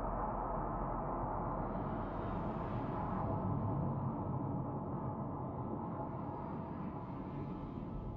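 A blast rumbles deeply as debris scatters.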